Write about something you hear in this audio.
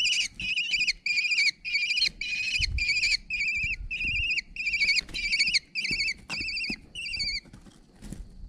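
A kestrel chick gives shrill, repeated begging calls.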